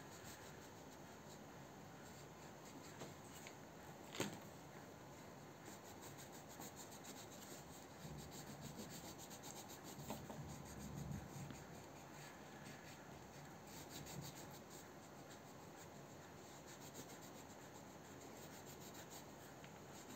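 A crayon scratches briefly on paper.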